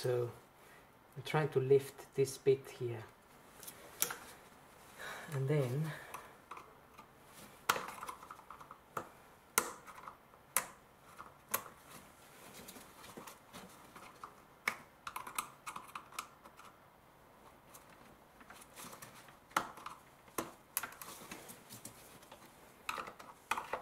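Plastic engine parts click and rattle as they are unclipped by hand.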